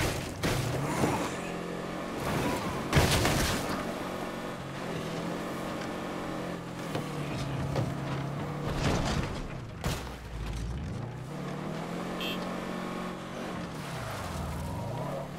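A car engine hums and revs steadily, rising and falling in pitch.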